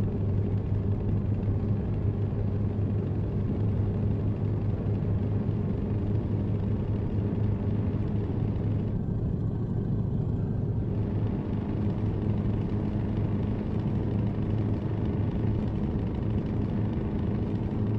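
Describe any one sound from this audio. Tyres roar on a motorway.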